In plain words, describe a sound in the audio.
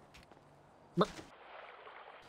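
A body splashes into a swimming pool.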